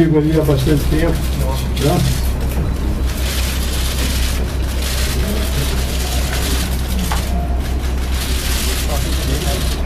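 Paper rustles as a document is unfolded.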